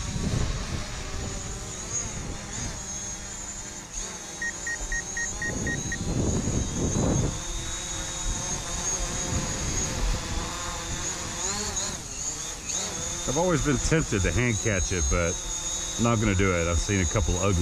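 A small drone hums and whines steadily close by.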